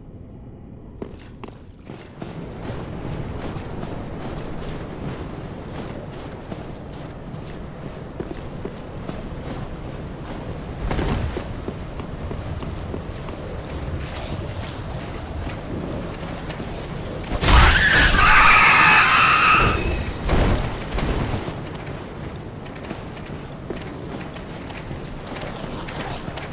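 Armoured footsteps crunch steadily over snowy ground.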